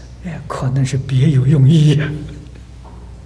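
An elderly man laughs heartily into a microphone.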